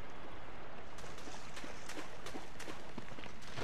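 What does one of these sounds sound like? Footsteps crunch slowly on leaves and twigs.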